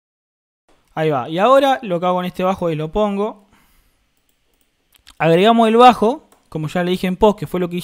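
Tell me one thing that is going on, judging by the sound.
A young man sings into a close microphone.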